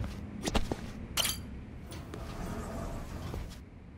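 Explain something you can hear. A door swings open.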